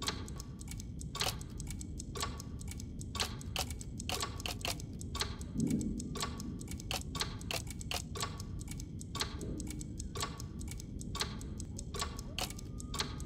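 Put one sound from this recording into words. Stone puzzle tiles slide and click into place.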